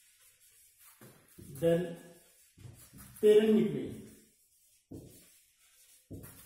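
A middle-aged man speaks calmly and explains, close by.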